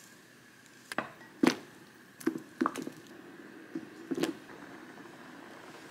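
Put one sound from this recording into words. Eggs plop into simmering sauce.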